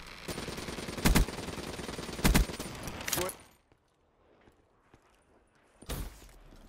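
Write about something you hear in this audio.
Gunshots boom in quick bursts.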